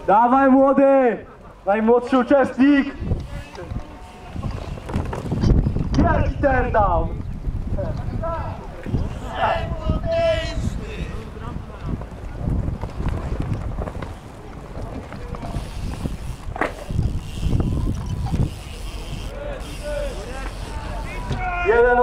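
Bike tyres roll over concrete.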